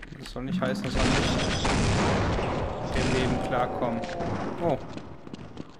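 A rifle fires rapid bursts.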